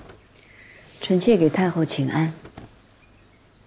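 A young woman speaks a formal greeting.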